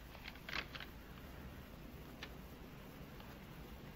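Paper rustles on a desk.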